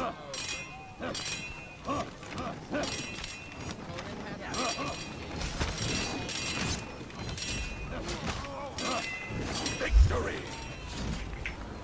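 Swords clash and clang in quick, sharp strikes.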